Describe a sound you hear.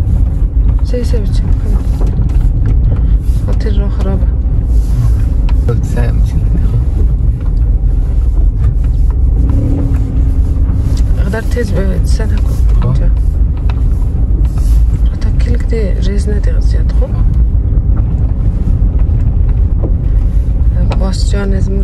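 A car engine rumbles steadily inside the cabin.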